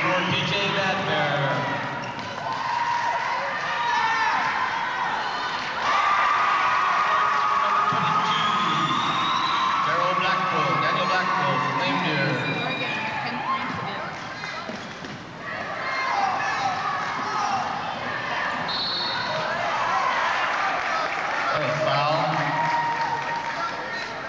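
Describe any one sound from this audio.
Crowd noise fills a large echoing gym.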